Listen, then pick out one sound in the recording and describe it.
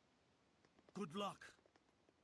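A man calls out a farewell.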